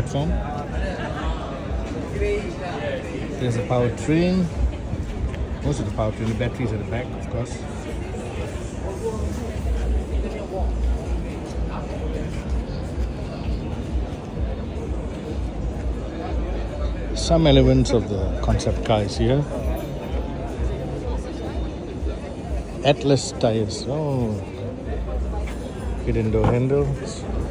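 A crowd chats in the background.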